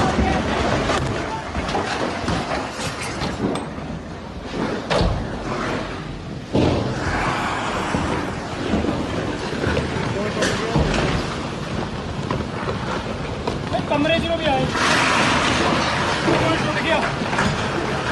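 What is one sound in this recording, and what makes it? Rocks and boulders crash and rumble down a hillside.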